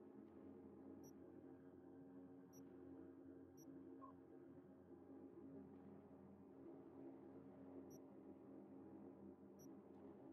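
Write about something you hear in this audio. Short soft electronic blips sound now and then.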